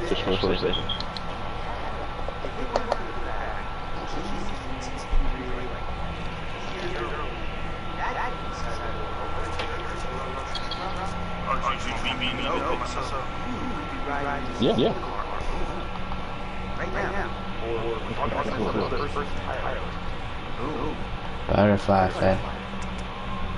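A young man talks casually and teasingly, close by.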